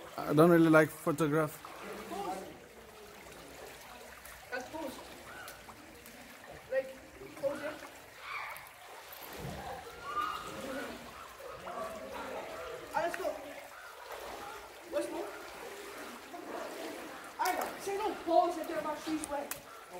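A man wades and splashes through water.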